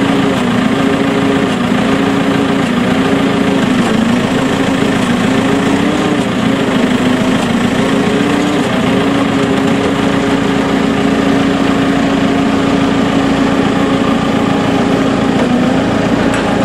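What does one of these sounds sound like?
A large farm machine's engine drones loudly and steadily nearby, its pitch wavering at first.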